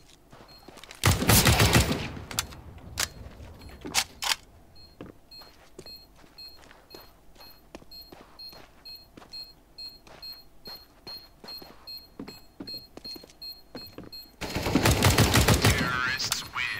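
A rifle fires loud, booming shots.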